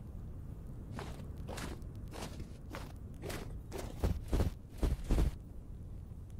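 Blocks crack and crumble as they are broken, in quick repeated knocks.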